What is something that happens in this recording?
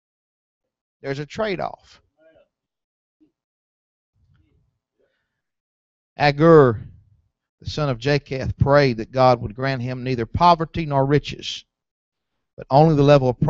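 A man preaches through a microphone and loudspeakers in a large room, with long pauses.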